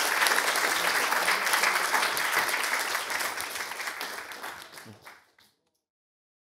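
An audience applauds in a large hall and the clapping fades away.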